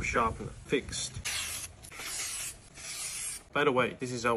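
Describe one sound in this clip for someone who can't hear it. Paper slices as a knife cuts through it.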